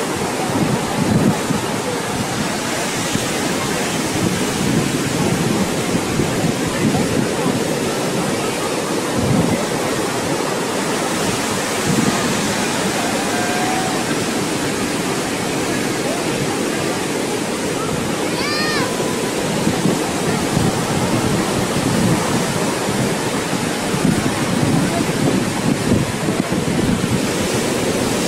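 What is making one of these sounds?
Surf foam hisses steadily as it washes up the sand.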